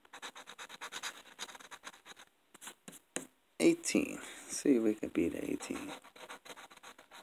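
A coin scratches rapidly across a card, with quick rasping strokes.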